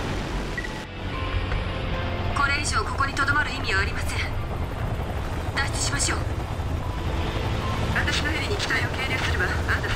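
The rotors of a twin-rotor aircraft thump and hum overhead.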